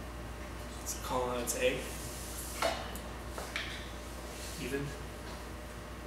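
A man speaks a few short words quietly nearby.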